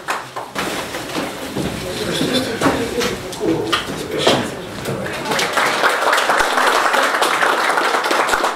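A crowd of people applauds, clapping loudly.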